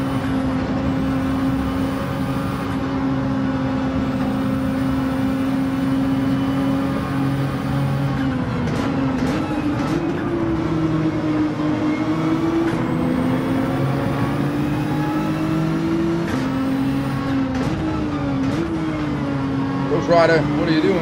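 A racing car engine roars steadily, rising and dropping in pitch through gear changes.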